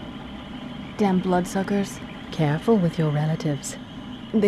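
A young woman speaks calmly and quietly, close up.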